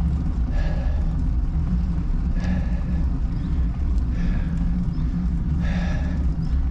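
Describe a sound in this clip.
Tyres roll along a paved road.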